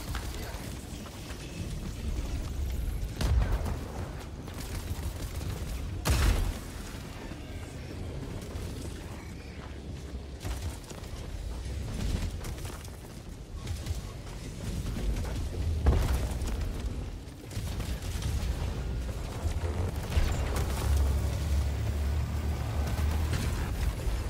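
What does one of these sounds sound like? Wind howls in a blizzard.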